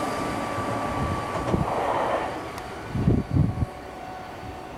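Train wheels thump over rail joints.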